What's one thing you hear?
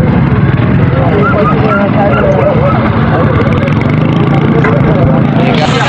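A motorcycle engine idles and revs nearby.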